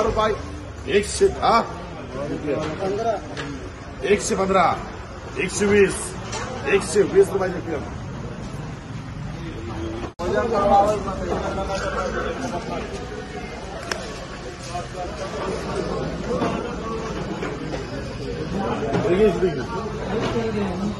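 Several men talk nearby, overlapping each other.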